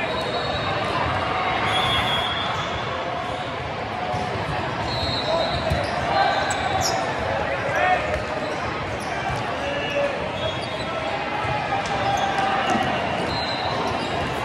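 A large crowd chatters in a big echoing hall.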